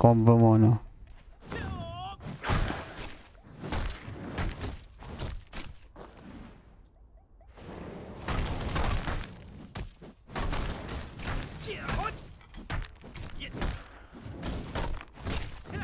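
Blades slash and strike with heavy hits in quick bursts.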